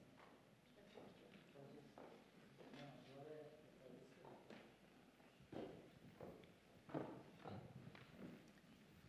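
A man speaks calmly at a distance in a reverberant room.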